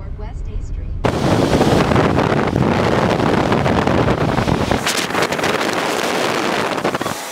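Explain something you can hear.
Wind and road noise rush loudly past an open car window.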